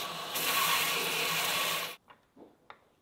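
A belt grinder whirs loudly as it grinds metal.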